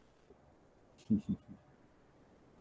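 An elderly man chuckles briefly over an online call.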